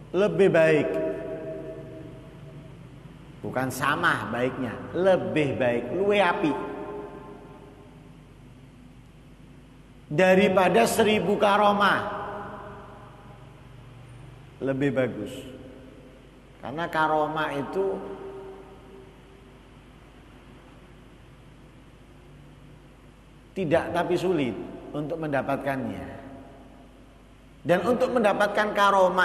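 A man speaks with animation through a microphone, in bursts with pauses, his voice echoing in a large hall.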